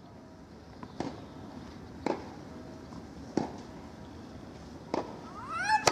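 A tennis ball bounces on a clay court several times.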